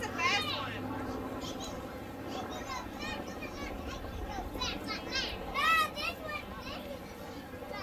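A propeller plane's engine drones overhead.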